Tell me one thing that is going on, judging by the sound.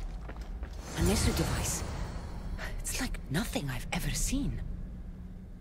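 A bright magical shimmer swells as a device is picked up.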